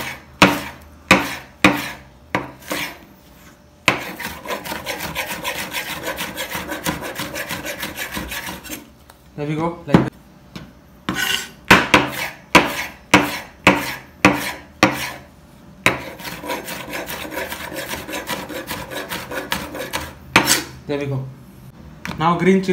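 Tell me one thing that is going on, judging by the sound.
A knife chops on a wooden cutting board with sharp knocks.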